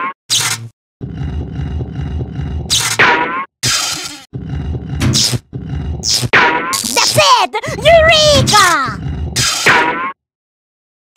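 Electric sparks buzz and crackle along wires in a game.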